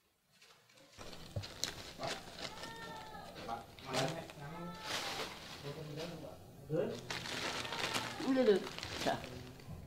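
Potatoes rustle and knock in a woven basket.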